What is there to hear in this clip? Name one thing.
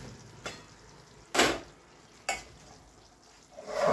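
A metal pot lid clanks against a pot.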